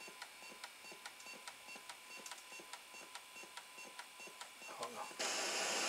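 A disk drive mechanism ticks rapidly and steadily.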